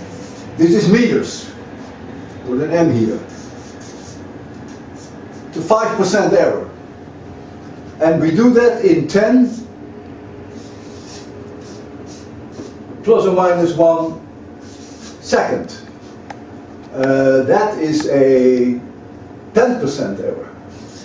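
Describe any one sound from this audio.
An elderly man speaks calmly and clearly, pausing between phrases.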